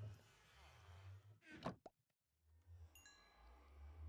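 A wooden chest lid thuds shut.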